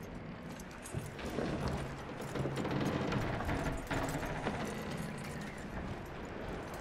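Wind blows outdoors in a snowstorm.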